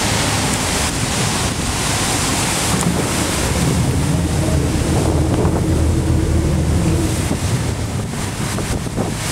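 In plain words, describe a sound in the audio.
Choppy water laps against a stone quay.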